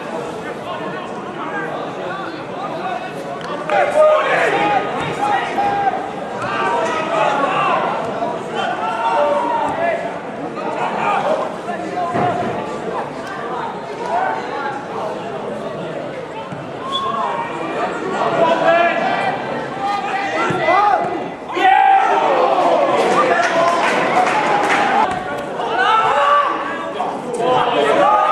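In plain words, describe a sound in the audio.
Men shout and call to each other across an open outdoor pitch.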